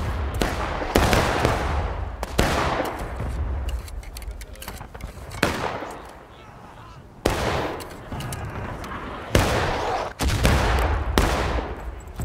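Musket shots boom and echo across open ground.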